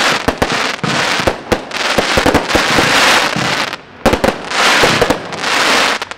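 Fireworks crackle and fizz in dense showers.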